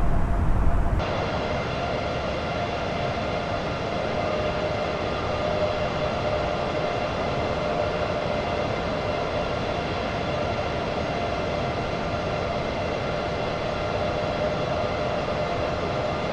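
Jet engines whine and roar steadily, heard from outside the airliner.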